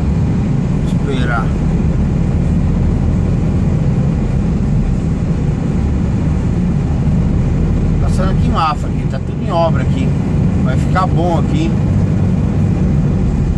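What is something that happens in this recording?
A truck's diesel engine rumbles steadily from inside the cab.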